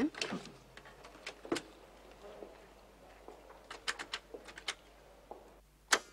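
A woman talks on a telephone.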